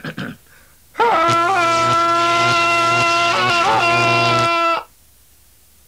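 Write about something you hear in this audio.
A man sings a long, held note in a puppet voice.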